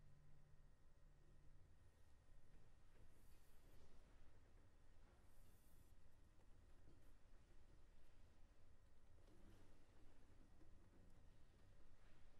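A cello plays a slow melody in an echoing hall.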